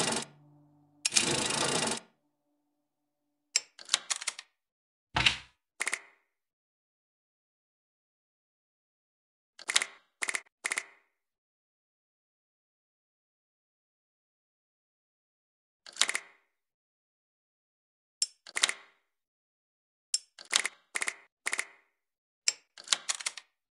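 Short chiming game sounds ring out as pieces match and clear.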